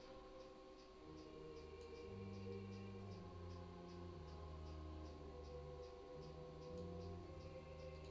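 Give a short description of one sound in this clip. Soft game music plays in the background.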